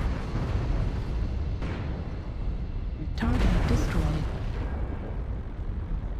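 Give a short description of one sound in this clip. Pulse lasers fire in bursts.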